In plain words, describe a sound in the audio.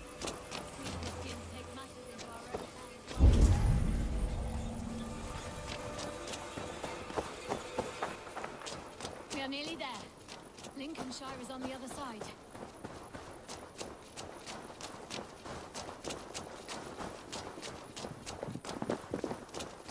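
Footsteps crunch steadily on dirt and grass.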